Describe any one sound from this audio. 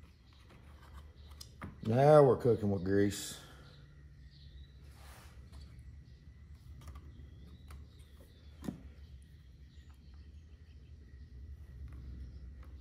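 Small plastic parts click and rattle close by.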